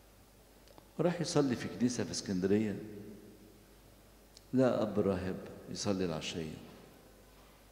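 An elderly man speaks slowly and calmly into a microphone in an echoing hall.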